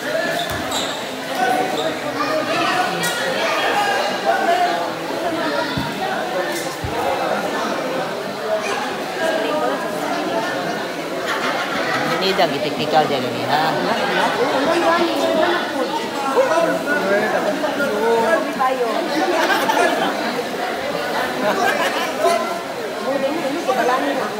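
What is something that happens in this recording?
A crowd of young people chatters and shouts loudly nearby.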